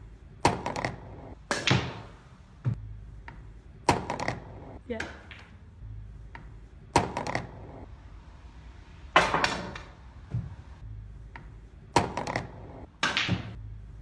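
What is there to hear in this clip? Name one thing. Pool balls clack sharply against each other.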